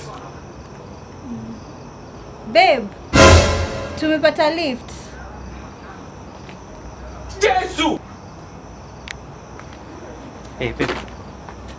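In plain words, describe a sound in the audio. A woman speaks loudly and expressively close by.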